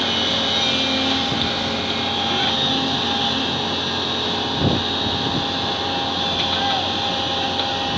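Sand pours from an excavator bucket into a truck bed.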